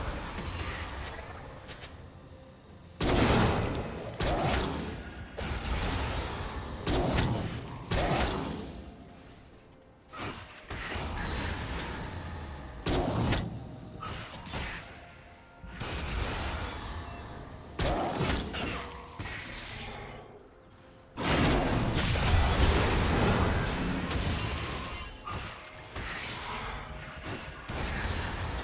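Spell blasts and weapon hits burst out again and again in a video game battle.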